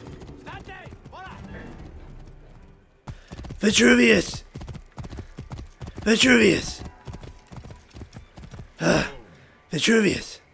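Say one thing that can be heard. A horse's hooves clop steadily on a dirt path.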